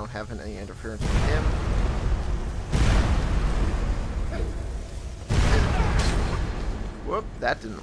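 A spell of fire roars and crackles.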